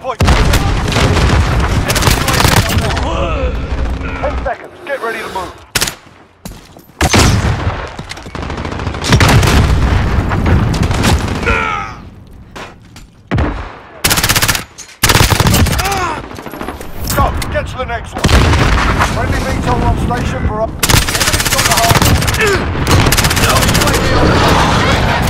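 Gunfire from an assault rifle in a video game cracks in bursts.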